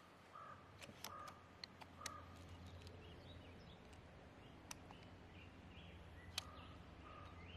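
The side lever of an air rifle clicks as it is cycled to load a pellet.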